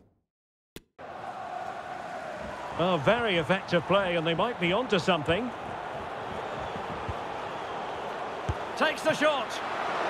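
A stadium crowd roars and murmurs.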